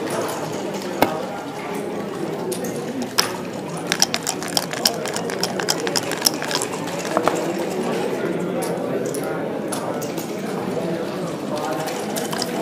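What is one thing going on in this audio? Game pieces click on a wooden board.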